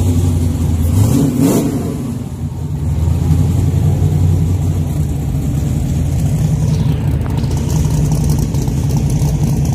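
A race car engine revs hard and roars.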